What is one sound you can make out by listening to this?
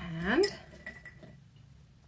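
Wooden beads clink against a glass jar.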